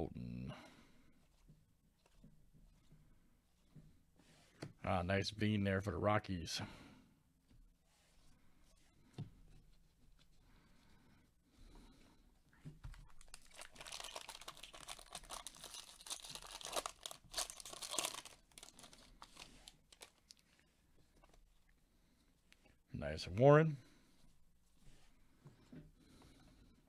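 Trading cards slide and flick against each other as they are shuffled.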